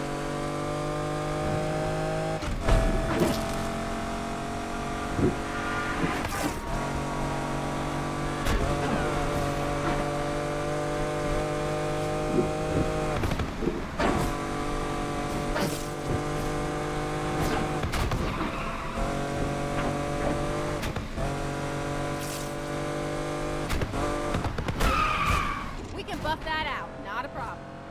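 A sports car engine roars at high revs and shifts up through the gears.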